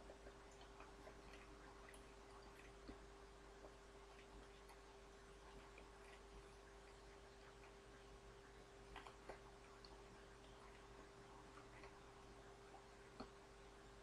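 A young woman chews gum with small wet smacks, close by.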